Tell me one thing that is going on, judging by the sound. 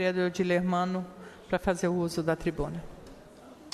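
A woman speaks into a microphone, in a calm and measured voice.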